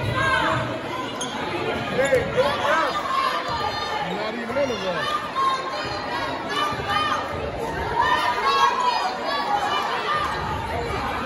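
Sneakers squeak on a hardwood court.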